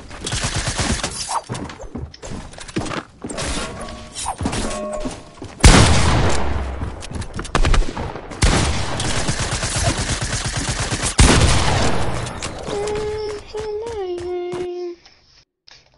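Sharp building clatter knocks in a video game.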